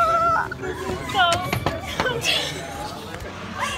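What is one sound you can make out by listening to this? A girl laughs loudly.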